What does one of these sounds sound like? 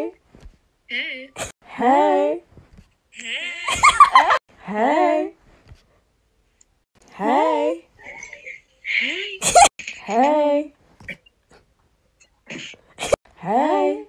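Young women sing in short bursts, heard close.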